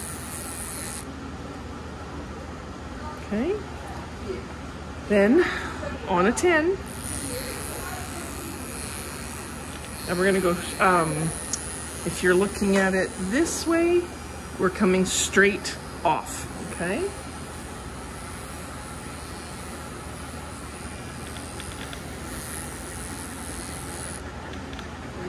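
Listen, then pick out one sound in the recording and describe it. Electric clippers buzz steadily close by.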